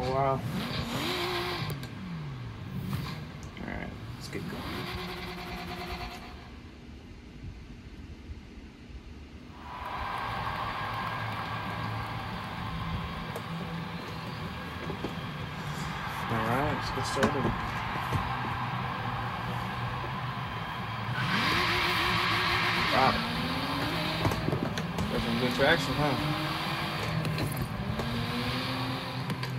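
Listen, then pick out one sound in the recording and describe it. A sports car engine revs up and down loudly.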